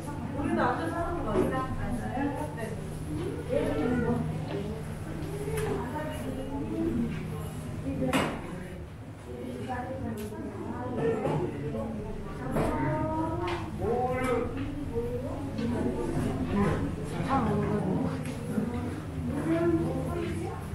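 People chatter in a room.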